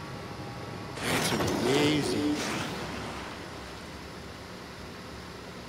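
Water splashes and rushes under a kart.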